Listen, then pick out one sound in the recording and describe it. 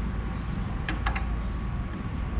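A motorcycle kickstand clicks down.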